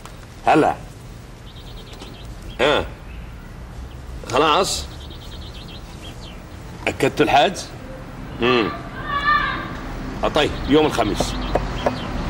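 A man speaks into a phone in short bursts, close by.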